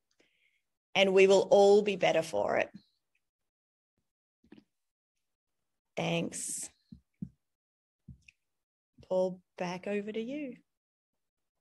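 A woman speaks calmly and warmly over an online call.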